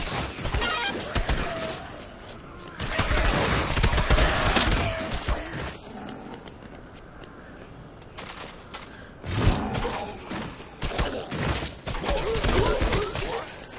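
Heavy blows thud and smack repeatedly.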